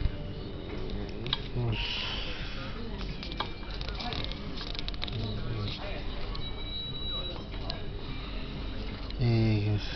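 Paper pages rustle and crinkle as they are turned by hand.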